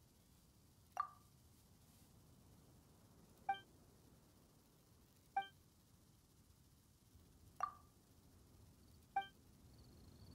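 Short soft chimes ring at intervals.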